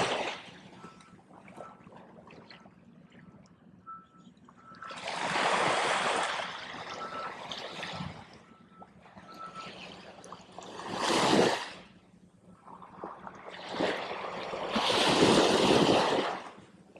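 Small waves wash and break on the shore close by.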